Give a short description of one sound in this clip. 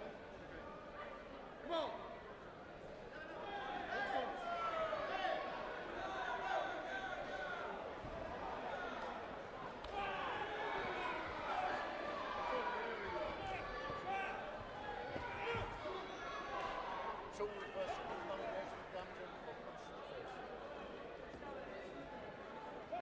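A crowd of men and women chatter in a large, echoing hall.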